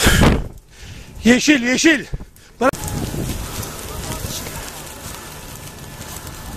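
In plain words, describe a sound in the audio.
A brush fire crackles and roars.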